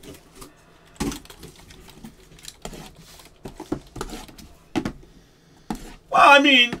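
Cardboard boxes knock and slide against each other as they are handled.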